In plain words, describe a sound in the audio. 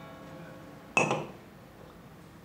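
A glass clinks as it is set down on a wooden counter.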